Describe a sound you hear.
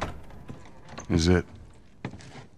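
A man speaks calmly and briefly.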